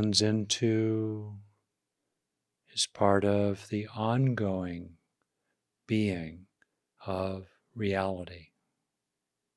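An older man speaks calmly and slowly into a close microphone.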